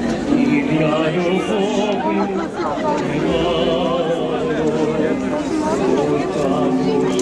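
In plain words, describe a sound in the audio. A large outdoor crowd chatters and calls out close by.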